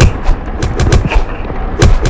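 Sharp hitting sounds ring out from a game fight.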